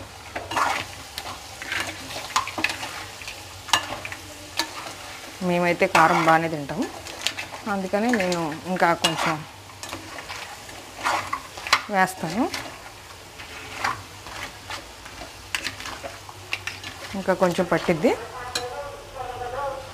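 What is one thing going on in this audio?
A metal spoon scrapes and clinks against a pan while food is stirred.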